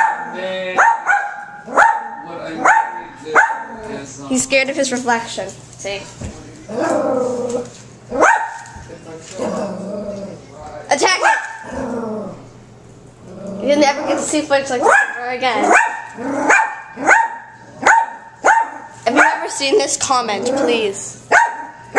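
A small dog barks sharply.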